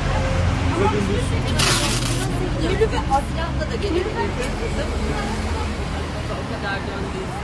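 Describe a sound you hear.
Hands press and rustle a cloth flag against a glass window.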